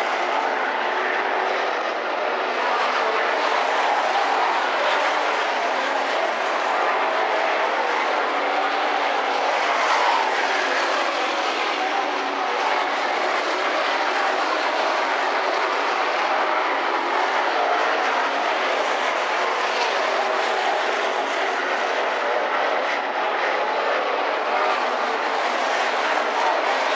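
Race car engines roar loudly as the cars speed past.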